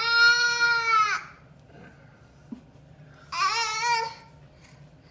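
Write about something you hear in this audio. A baby squeals loudly in long high cries.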